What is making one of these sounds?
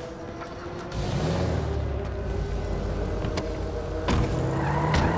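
A car engine starts and runs with a steady low rumble.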